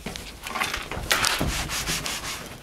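A cloth wipes across a board.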